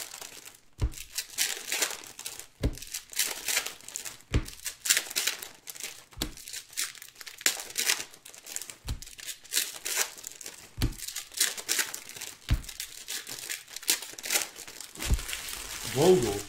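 Foil card packs crinkle and rustle as hands tear them open.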